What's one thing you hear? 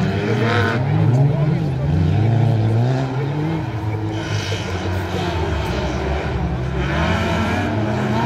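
Motorcycle engines rev and whine in the distance, outdoors.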